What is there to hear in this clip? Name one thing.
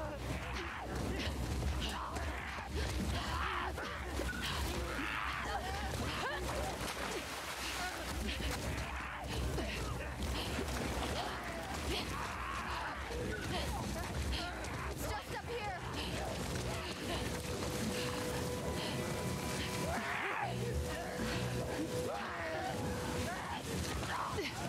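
Footsteps run quickly through wet undergrowth.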